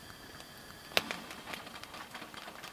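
A gas valve clicks as it is turned.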